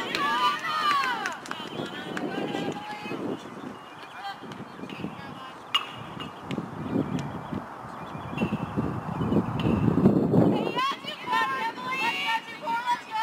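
Young women call out and chatter from across an open field.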